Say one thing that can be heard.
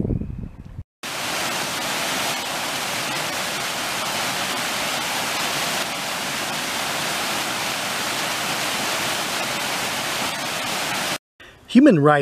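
A waterfall splashes and rushes steadily over rocks.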